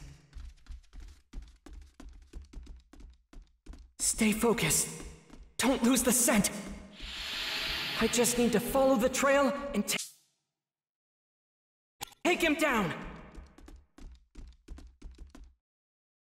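Quick footsteps run across a wooden floor.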